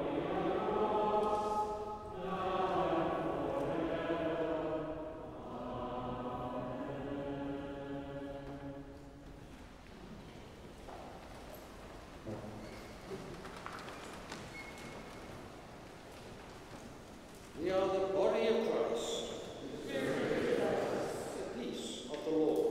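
A choir sings slowly in a large echoing hall.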